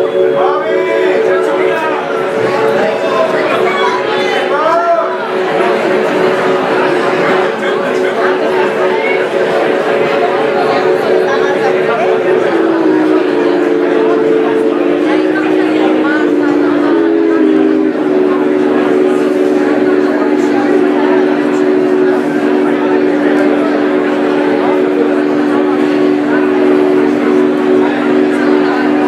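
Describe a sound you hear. A keyboard plays sustained, slowly changing chords through speakers.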